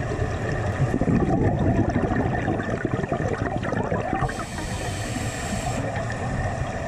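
Air bubbles gurgle and rush past underwater.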